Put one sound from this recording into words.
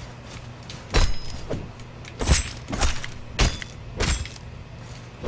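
A tool chops into a carcass in sharp knocks.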